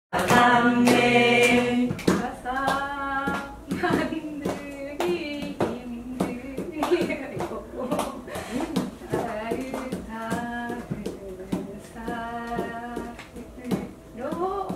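A young woman sings nearby.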